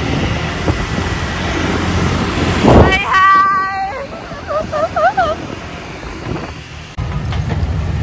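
Motorbike engines hum as the bikes ride along a road.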